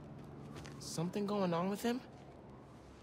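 A young man asks a question calmly.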